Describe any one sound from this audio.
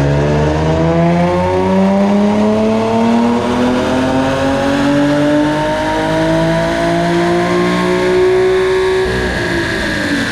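Tyres whir on spinning rollers.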